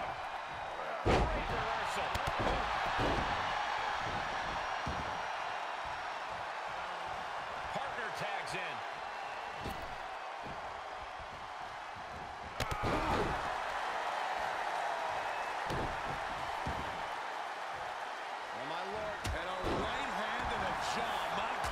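A large arena crowd cheers and roars.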